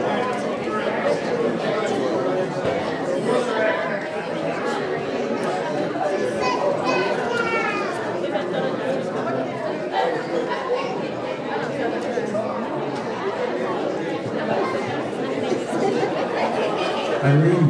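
Adult men and women chat in a hubbub of overlapping voices in a room.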